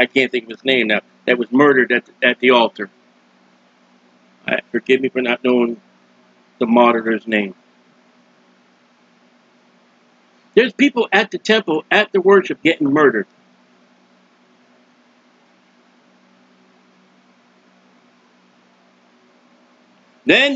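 A middle-aged man speaks calmly and closely into a microphone, in short bursts with pauses.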